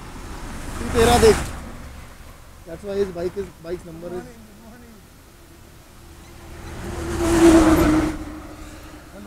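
A vehicle rushes past on the road.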